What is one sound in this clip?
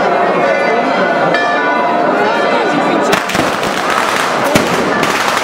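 A dense crowd of men and women chatters outdoors.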